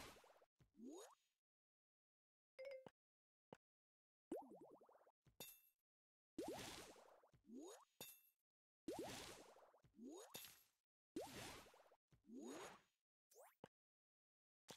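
Rising whooshing game sounds sweep upward in quick bursts.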